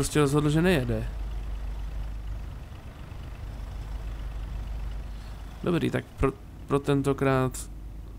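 A truck engine hums low and steady.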